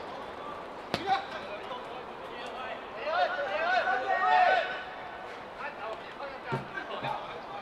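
A football is kicked on artificial turf.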